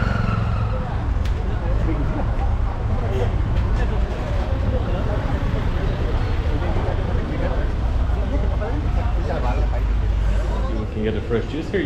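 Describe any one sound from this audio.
Wind rumbles outdoors amid street noise.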